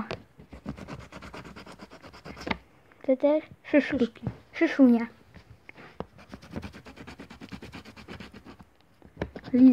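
A coin scrapes rapidly across a scratch card.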